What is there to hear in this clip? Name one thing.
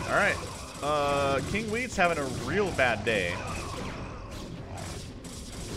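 Electronic blasts and zaps sound from a battle in a strategy game.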